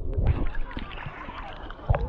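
Water splashes as a woman swims.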